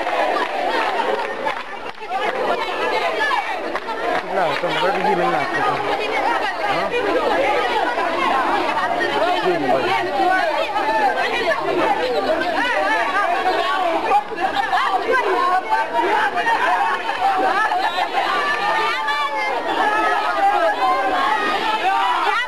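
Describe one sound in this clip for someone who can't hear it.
A large crowd of young men shouts and chants outdoors.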